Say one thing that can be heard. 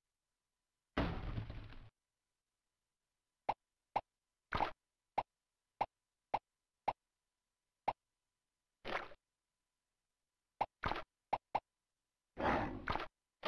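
A blob character in a game lands with soft squelching thuds.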